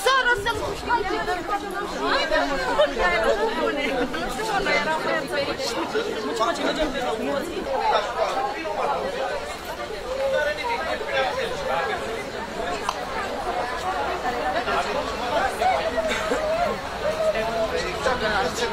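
A crowd of men and women talks in a loud, overlapping babble outdoors.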